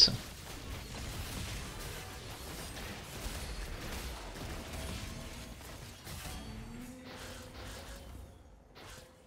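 Video game battle effects clash, zap and whoosh.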